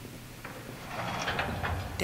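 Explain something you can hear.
A metal gate rattles as it is pushed.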